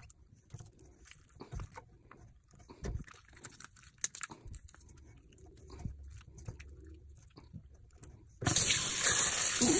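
Wet fish innards squelch under fingers.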